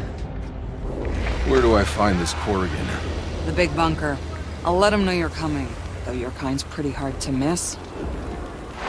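A woman speaks in a low, calm voice.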